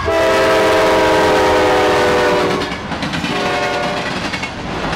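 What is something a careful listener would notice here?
A locomotive horn blares loudly close by.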